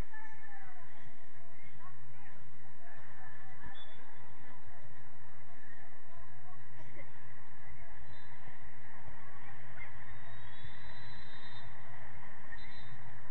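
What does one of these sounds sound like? Young players shout and call out in the distance outdoors.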